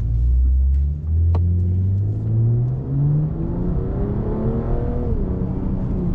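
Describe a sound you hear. A luxury sports sedan's engine revs up rising in pitch as the car accelerates.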